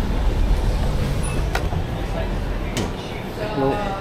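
A glass door opens with a click.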